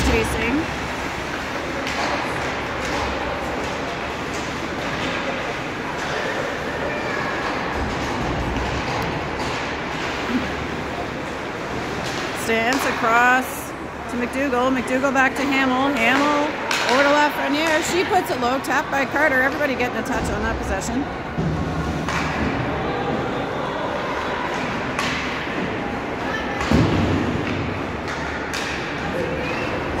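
A crowd of spectators chatters in a large echoing arena.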